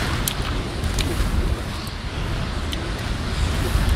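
Water sprays up as shots splash into the sea.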